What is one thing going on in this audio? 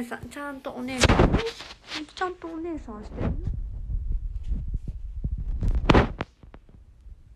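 Something thumps and rustles against a phone microphone.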